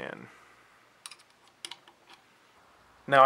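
Small metal parts click into place.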